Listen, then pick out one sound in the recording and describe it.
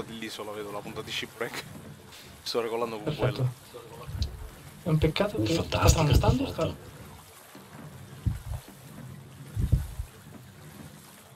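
Rough sea waves crash and surge against a small wooden boat.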